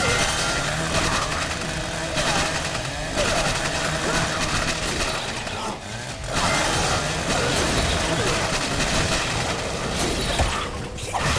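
Blows thud against a body in a fight.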